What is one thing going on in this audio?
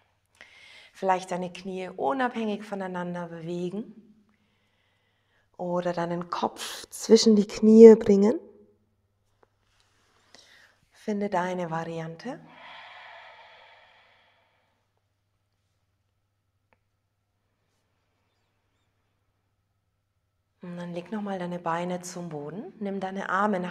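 A woman speaks calmly, giving instructions.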